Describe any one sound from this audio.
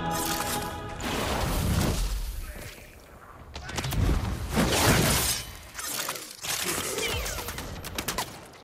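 Heavy melee blows land with loud thumps and whooshes.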